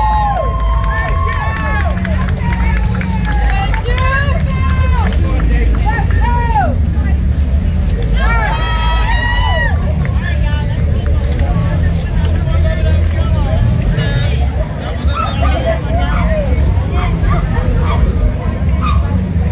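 Loud music with a deep, pounding bass plays through outdoor loudspeakers.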